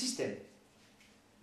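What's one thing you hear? A man speaks a short word close by.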